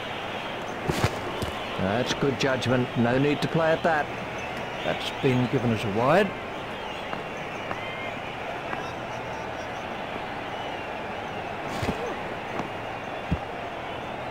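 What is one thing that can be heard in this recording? A cricket bat knocks against a ball.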